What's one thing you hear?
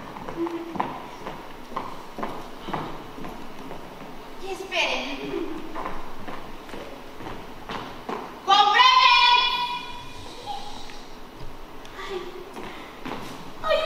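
A woman speaks theatrically in a large hall.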